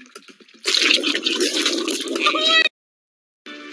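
Thick slime gushes and splatters loudly.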